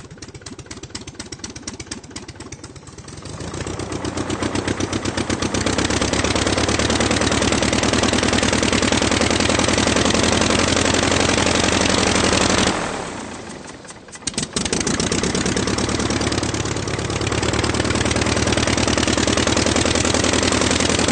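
A car engine runs with a steady, throbbing rumble.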